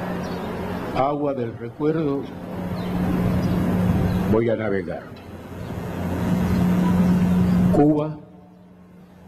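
A man sings slowly into a microphone through loudspeakers outdoors.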